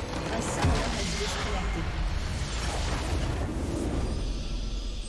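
A loud game explosion booms and crashes.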